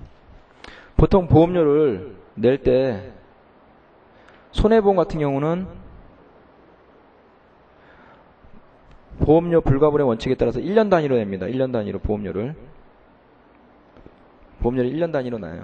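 A man lectures into a microphone, speaking in short bursts with pauses.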